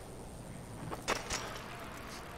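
A bicycle lands hard with a thud.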